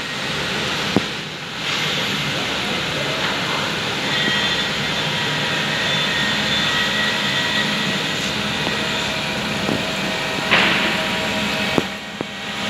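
A milling machine whirs steadily as it cuts metal, in a large echoing hall.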